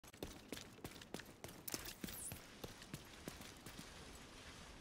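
Footsteps thud quickly on a hard surface.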